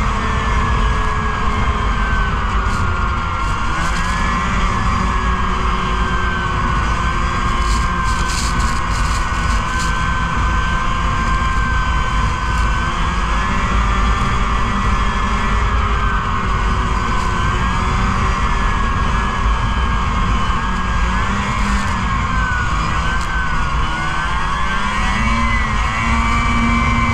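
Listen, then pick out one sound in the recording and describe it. A snowmobile engine drones loudly and steadily up close, its pitch wavering as it speeds up and slows.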